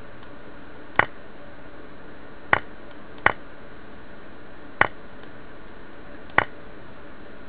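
Sharp, short clicks sound as chess pieces are moved in a game.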